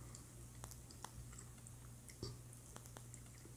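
A woman bites into crunchy food close to the microphone.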